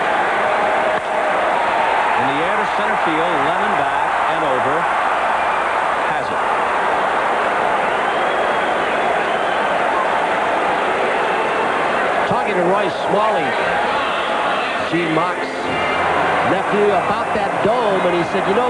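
A large crowd roars and cheers in a big echoing stadium.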